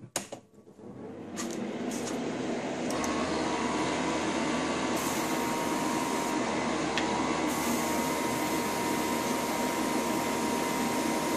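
An airbrush sprays with a steady hiss.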